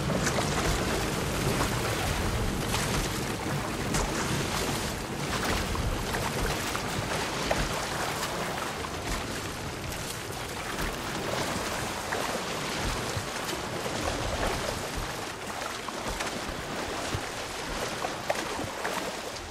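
Water splashes as a swimmer strokes through it.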